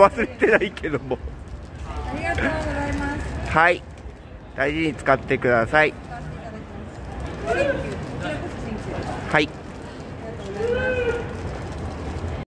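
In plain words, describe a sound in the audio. A paper bag crinkles and rustles in hands.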